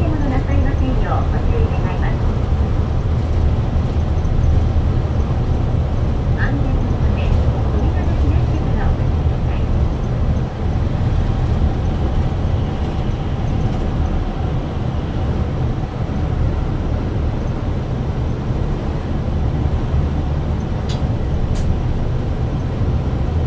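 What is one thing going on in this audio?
A bus rattles and creaks as it rolls along.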